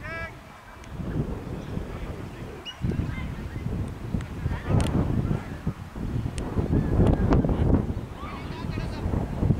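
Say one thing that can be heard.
Wind gusts outdoors, rumbling against the microphone.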